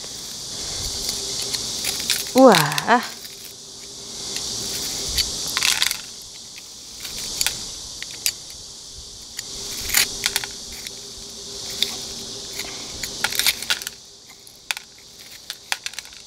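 Metal tweezers scrape and click against small pebbles in a pot.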